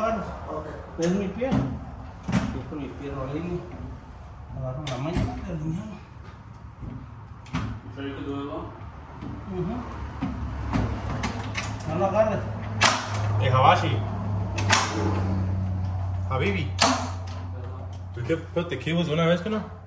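Metal clicks and clanks as panels are fastened together.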